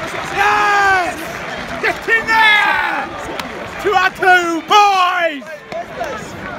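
A young man shouts loudly and excitedly close by.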